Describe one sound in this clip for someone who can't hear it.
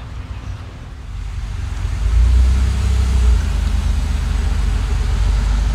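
A car engine rumbles as a car drives past.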